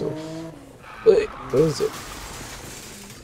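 A car smashes through a wire fence with a metallic crash.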